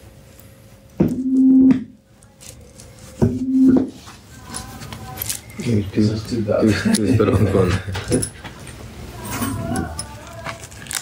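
An elderly man speaks slowly and calmly, close by.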